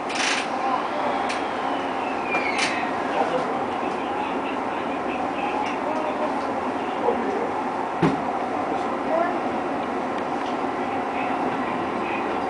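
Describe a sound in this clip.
A train rumbles steadily along the tracks from inside the cab.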